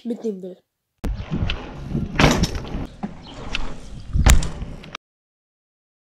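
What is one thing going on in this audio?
Bicycle tyres roll and rattle over pavement.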